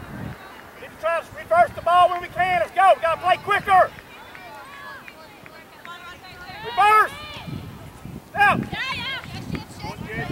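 Young women and spectators shout and call out outdoors across an open field.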